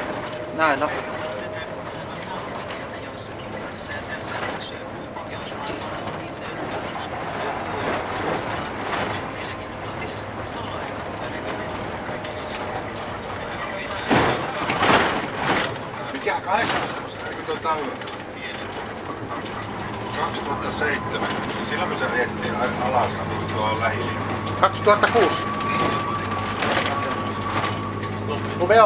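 Tyres rumble on a paved road.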